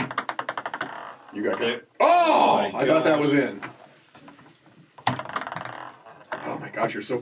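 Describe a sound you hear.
A ball clacks rapidly against wooden paddles on a tabletop game.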